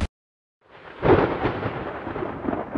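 Glass cracks and shatters with a sharp crash.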